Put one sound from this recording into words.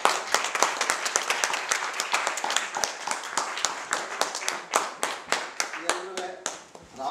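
Hands clap quickly and steadily in a rhythm.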